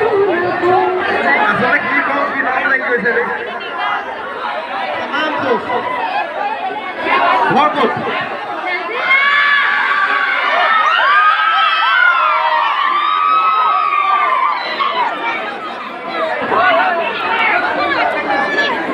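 A young man sings loudly into a microphone through loudspeakers.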